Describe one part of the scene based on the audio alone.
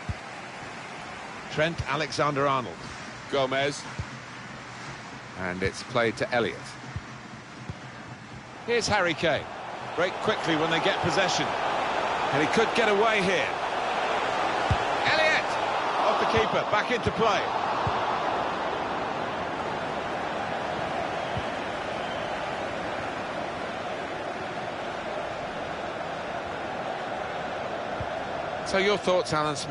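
A stadium crowd murmurs and swells into a roar.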